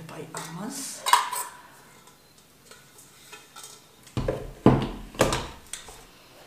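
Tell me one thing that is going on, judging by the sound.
A metal bowl clanks as it is fitted onto a stand mixer.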